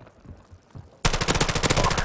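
Rapid gunfire bursts out loudly and close.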